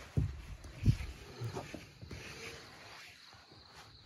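A car window motor whirs as the window lowers.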